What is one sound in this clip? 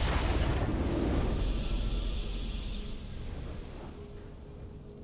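A triumphant victory sound from a video game swells and slowly fades.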